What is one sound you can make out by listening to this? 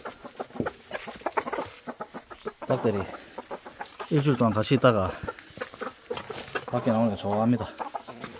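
Hens cluck close by.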